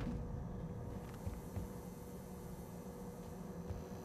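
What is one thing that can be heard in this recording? Sliding doors whoosh open.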